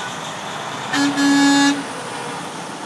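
A truck's air horn blasts briefly and loudly.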